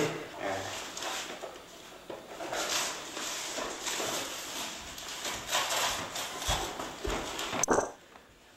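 Cardboard scrapes and rattles as a box is handled.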